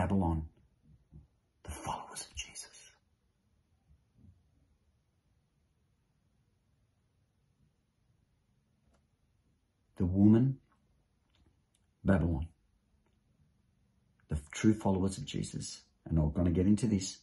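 A middle-aged man speaks calmly and closely into a microphone, with pauses.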